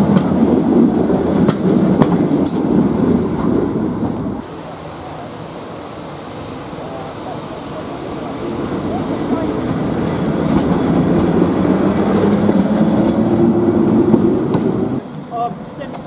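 A railway locomotive rumbles past along a track.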